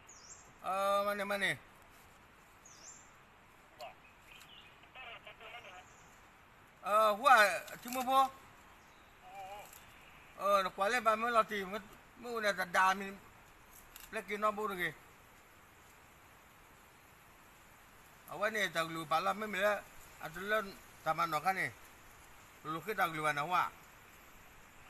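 A man speaks in short bursts into a handheld radio.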